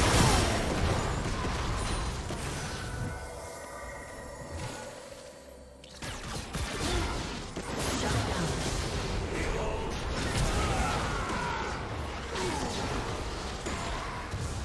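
Game spell effects whoosh, zap and clash in a battle.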